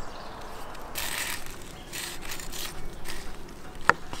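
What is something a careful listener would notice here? A knife saws through a crusty roast with a scraping rasp.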